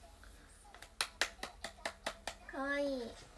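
A young woman claps her hands several times.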